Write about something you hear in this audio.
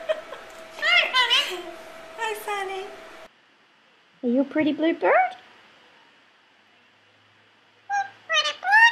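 A parrot chatters in a high, squeaky voice close by.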